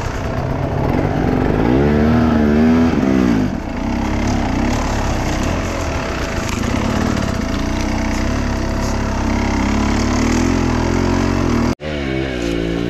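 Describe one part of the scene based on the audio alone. A dirt bike engine revs loudly up close.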